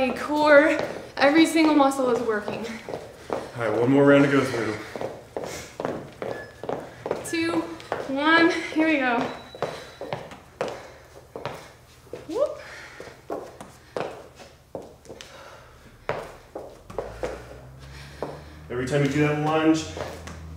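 Feet thump and shuffle on a hard floor.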